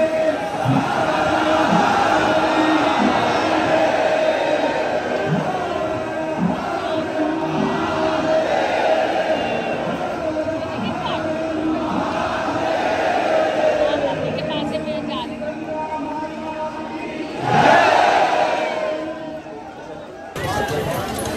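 A large crowd chants and sings loudly in an open space.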